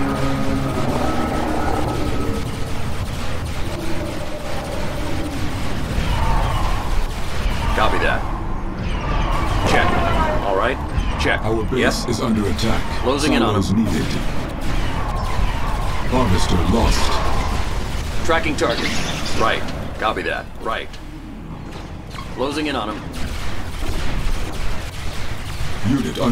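Laser weapons zap and crackle in a battle.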